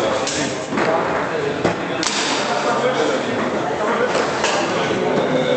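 A ball clacks sharply against the plastic players and walls of a foosball table.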